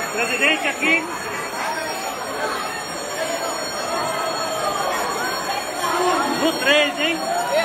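A man shouts with excitement close by.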